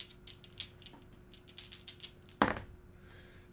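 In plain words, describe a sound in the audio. Dice rattle and clatter into a tray.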